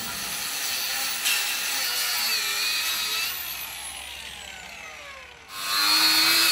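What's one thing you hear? An angle grinder whirs at high speed and then slowly winds down.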